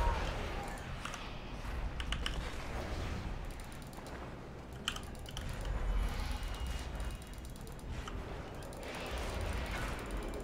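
Game spell effects chime and whoosh.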